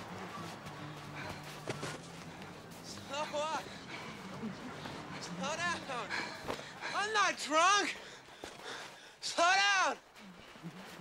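Footsteps run across soft sand.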